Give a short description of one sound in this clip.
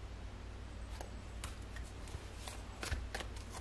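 Cards shuffle and slide softly in a hand.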